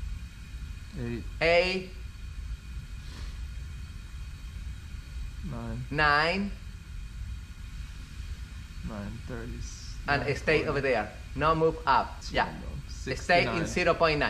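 A man speaks calmly and close by, with pauses.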